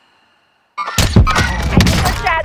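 A rifle fires with a loud crack.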